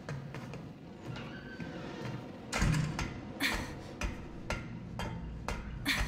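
Hands clang on metal ladder rungs while climbing.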